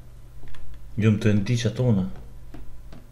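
A man speaks briefly and closely into a microphone.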